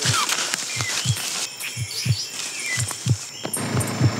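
Footsteps run quickly over leaves and twigs.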